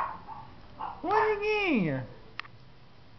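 A female cat in heat yowls in a long, drawn-out call.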